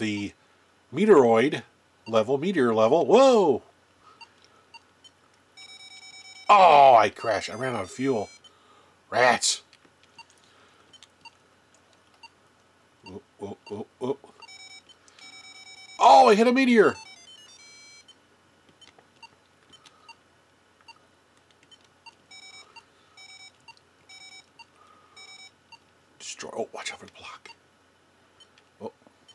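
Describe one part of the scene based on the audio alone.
A handheld electronic game plays short electronic beeps and bleeps.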